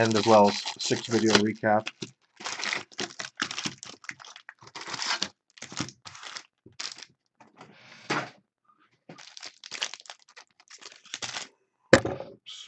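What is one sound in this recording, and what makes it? Card packs rustle and crinkle as hands handle them.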